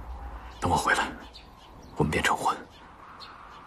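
A young man speaks softly and warmly, close by.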